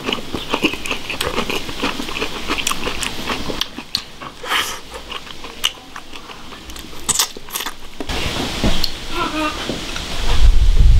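A man slurps food from a bowl.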